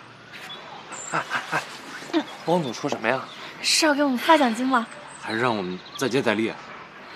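A young man asks questions with animation.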